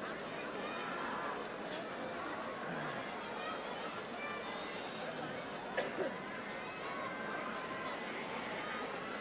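A large crowd cheers and chatters throughout a big echoing arena.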